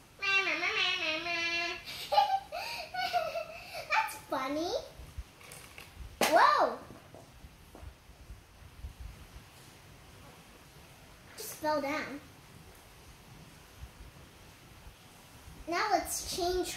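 A young girl speaks animatedly close by.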